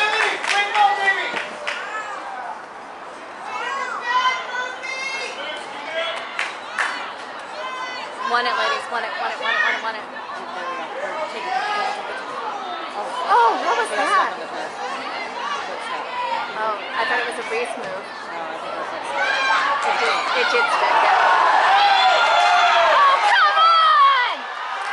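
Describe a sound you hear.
Spectators nearby shout and cheer with excitement, outdoors.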